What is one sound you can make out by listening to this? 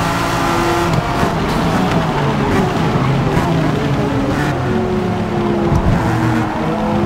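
A race car exhaust pops and crackles as the car slows down.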